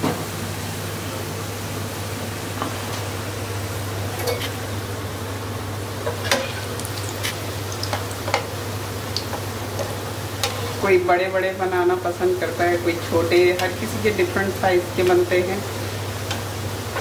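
Oil sizzles steadily in a frying pan.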